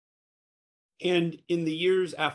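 A man speaks briskly over an online call.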